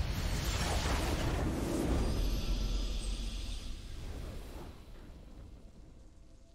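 A triumphant game fanfare swells loudly and then fades away.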